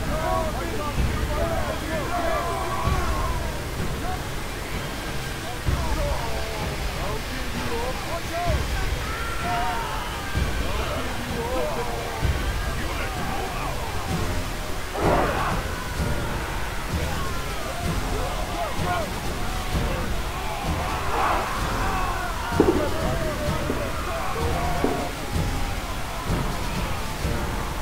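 Many soldiers shout and cry out in a crowd.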